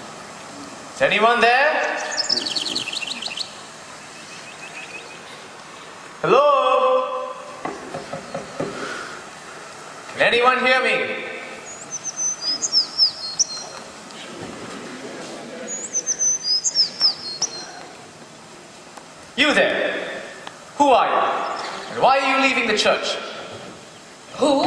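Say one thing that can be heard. A man sings loudly through a stage microphone in a large hall.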